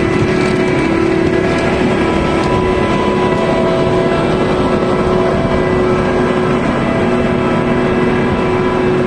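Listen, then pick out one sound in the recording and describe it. A large harvester's engine roars loudly and steadily close by.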